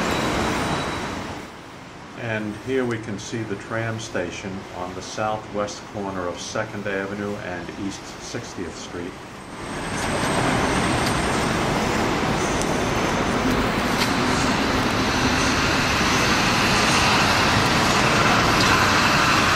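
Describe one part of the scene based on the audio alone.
City traffic rumbles along a street nearby.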